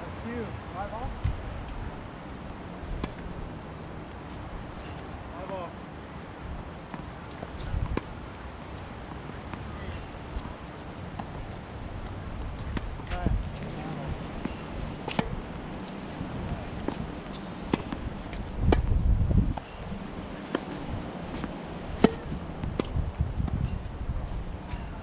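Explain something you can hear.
Sneakers scuff and squeak on a hard court.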